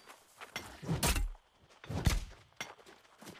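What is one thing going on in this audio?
Heavy weapon blows land with loud thuds.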